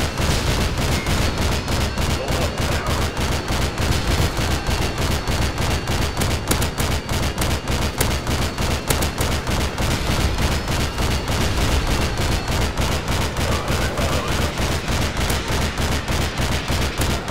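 Heavy gunfire booms in rapid, repeated bursts.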